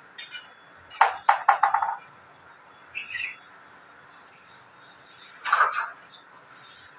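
Metal pots and dishes clink and clatter close by.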